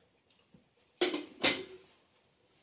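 Tea glasses clink sharply twice.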